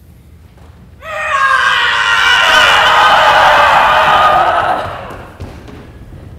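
Young performers shout a loud battle cry in an echoing hall.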